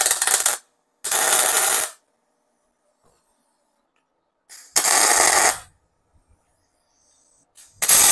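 An angle grinder grinds metal in short, loud bursts.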